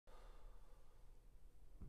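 A piano note rings out and fades in a large echoing hall.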